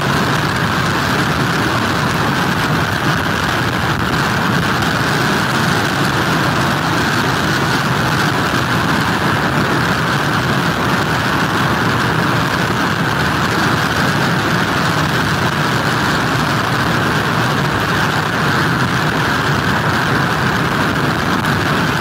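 Strong wind roars steadily outdoors.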